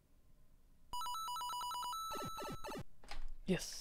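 Quick electronic coin chimes ring out.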